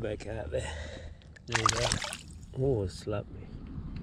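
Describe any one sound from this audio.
A fish splashes in the water as it is released.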